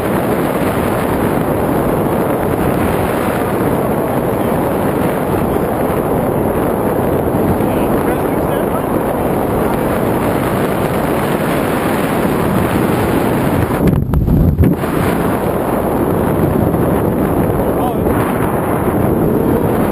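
Strong wind rushes and buffets loudly outdoors high in the air.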